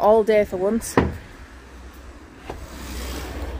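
A wooden panel knocks as it is fitted into place.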